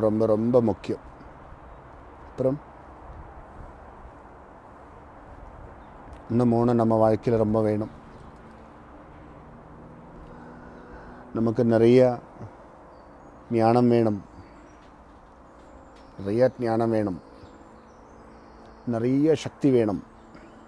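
A man chants slowly and melodically in short phrases close by, with pauses between them.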